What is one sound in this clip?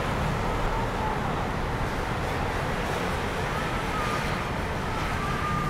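Traffic hums steadily in the distance outdoors.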